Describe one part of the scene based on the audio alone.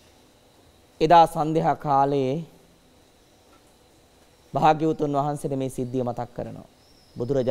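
A middle-aged man speaks calmly and clearly, close by, with pauses.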